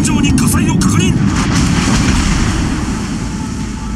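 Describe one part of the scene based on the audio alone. Shells splash heavily into the water nearby.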